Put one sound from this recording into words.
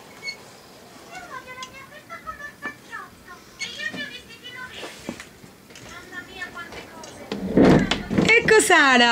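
A young girl chatters and squeals excitedly close by.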